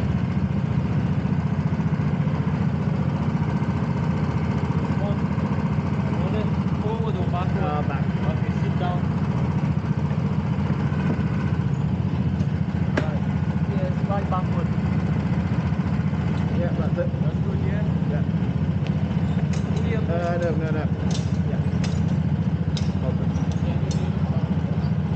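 A kart engine idles with a steady low rumble.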